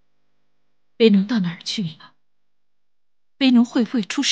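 A middle-aged woman speaks anxiously, close by.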